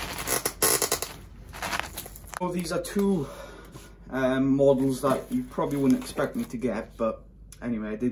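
Cardboard flaps creak and rustle as a box is pulled open.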